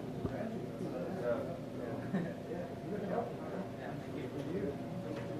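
Several men chatter and talk over one another nearby in a room.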